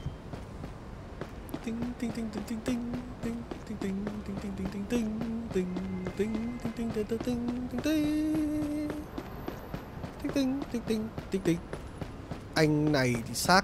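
Footsteps tap on pavement as a man walks.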